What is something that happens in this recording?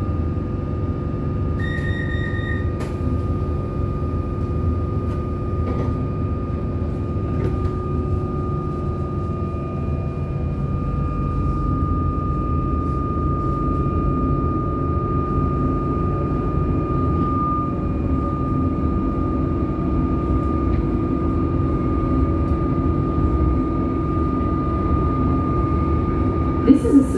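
A train rumbles steadily along the tracks, heard from inside the carriage.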